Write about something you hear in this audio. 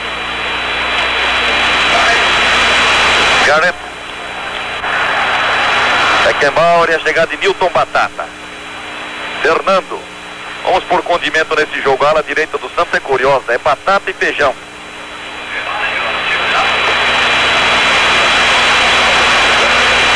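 A large stadium crowd roars loudly.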